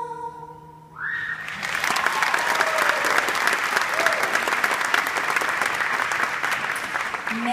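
A large audience claps and cheers loudly.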